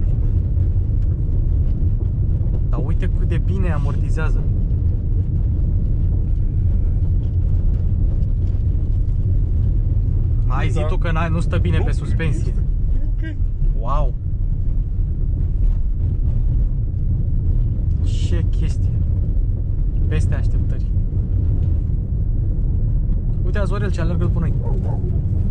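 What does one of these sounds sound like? Tyres rumble over a rough dirt road.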